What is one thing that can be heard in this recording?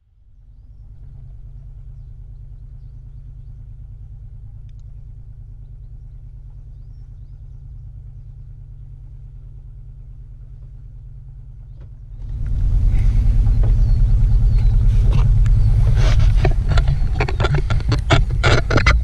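A boat's engine idles with a low, steady hum.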